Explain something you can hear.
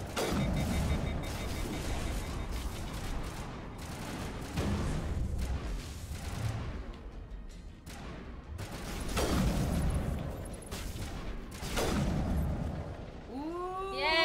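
Gunshots and blasts crack rapidly in a video game.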